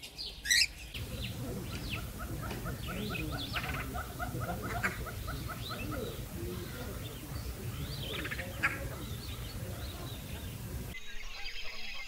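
A hornbill calls with rapid honking.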